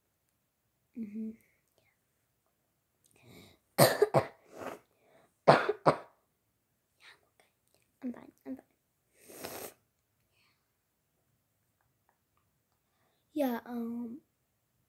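A young girl talks with animation close to a microphone, in short bursts.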